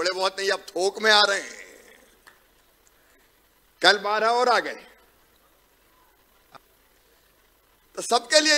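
A middle-aged man speaks with emphasis into a microphone, with long pauses between phrases.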